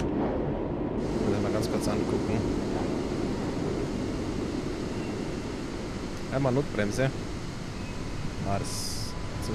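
A train's brakes hiss as it slows to a stop.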